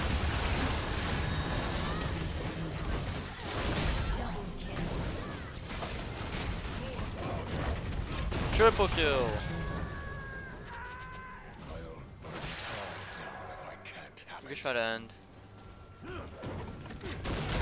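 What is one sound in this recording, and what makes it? Game combat sounds clash and burst.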